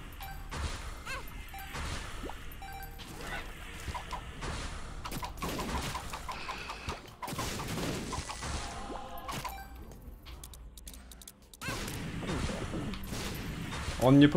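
Quick popping shots and squelching hits of a video game play throughout.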